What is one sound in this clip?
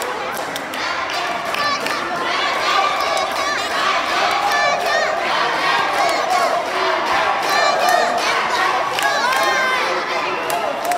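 Girls squeal and cheer in high voices.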